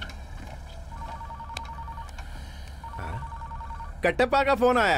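A phone beeps in short repeated tones.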